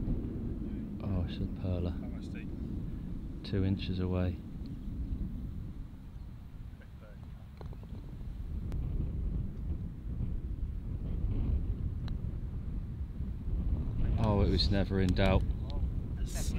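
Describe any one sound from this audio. A man speaks casually outdoors a little way off.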